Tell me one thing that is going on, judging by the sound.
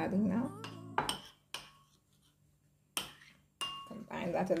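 A metal spoon clinks against a ceramic bowl.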